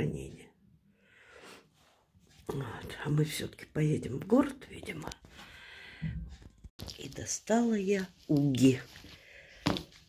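An elderly woman speaks with animation close to a microphone.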